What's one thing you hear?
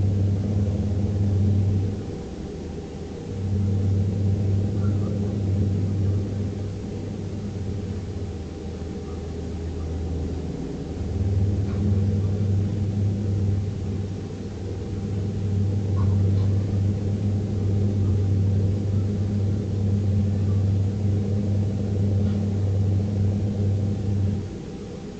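Tyres roar on a highway.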